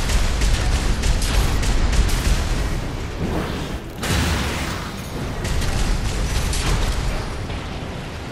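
Rapid gunfire rattles and booms.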